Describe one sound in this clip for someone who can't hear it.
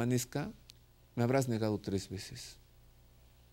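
An elderly man speaks calmly and clearly into a microphone.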